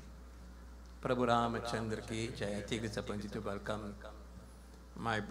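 A man speaks loudly into a microphone.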